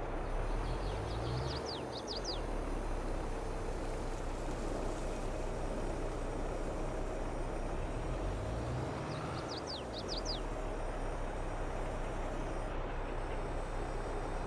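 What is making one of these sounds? A tractor engine rumbles steadily.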